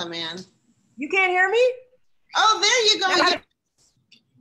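A second woman laughs and talks warmly over an online call.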